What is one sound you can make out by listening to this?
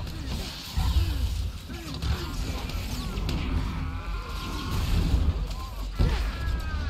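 Energy weapons fire and blast in a fight.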